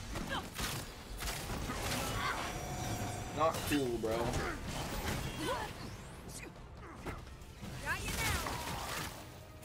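Energy beams whoosh and hum.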